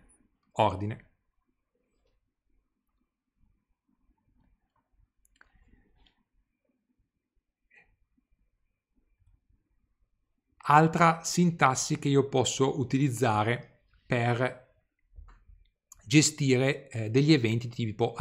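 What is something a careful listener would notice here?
A man speaks calmly into a close microphone, as if lecturing.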